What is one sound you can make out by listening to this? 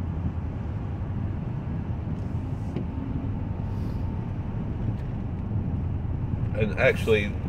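A car engine hums steadily with road rumble inside the cabin.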